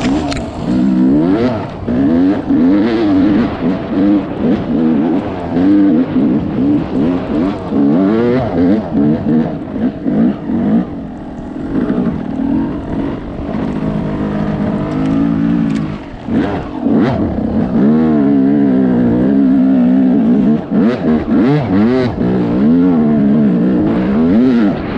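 A dirt bike engine revs up and down as it rides along a trail.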